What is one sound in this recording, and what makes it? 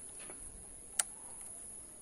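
A key clicks in an ignition switch.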